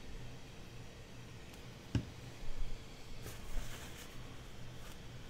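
Paper rustles and crinkles as hands fold it.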